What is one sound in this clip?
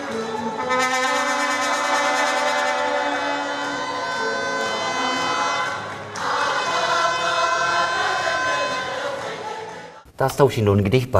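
A crowd of young women sings loudly together.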